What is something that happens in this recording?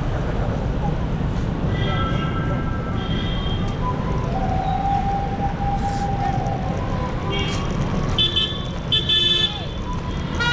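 Traffic rumbles steadily on a street outdoors.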